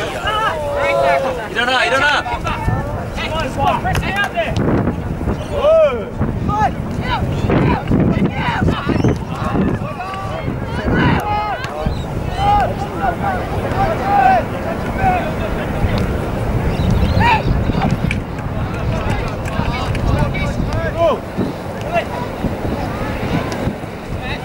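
Young players shout and call out to each other across an open field.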